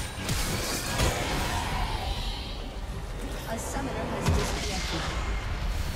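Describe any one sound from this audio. Game characters clash with magical blasts and impacts.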